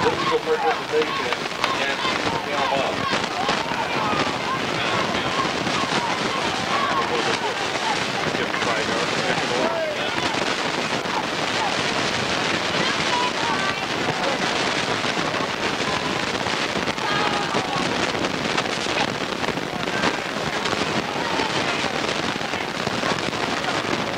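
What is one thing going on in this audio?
A crowd of people chatters and shouts outdoors at a distance.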